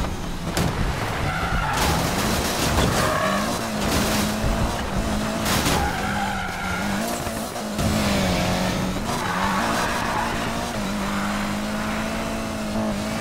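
A car engine roars and revs up and down as it races.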